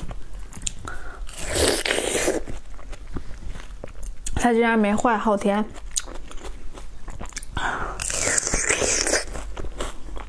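A woman bites into juicy melon and chews it wetly close to the microphone.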